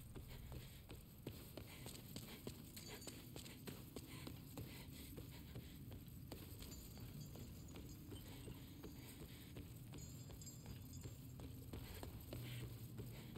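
Footsteps thud on wooden boards and stone.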